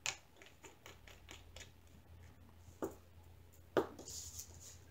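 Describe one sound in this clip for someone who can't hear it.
Small plastic containers click and tap against a table.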